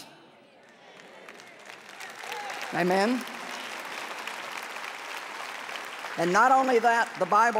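A large audience murmurs in response.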